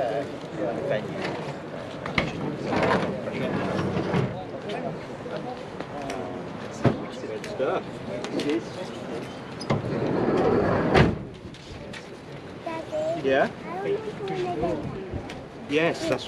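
Men talk casually nearby, outdoors.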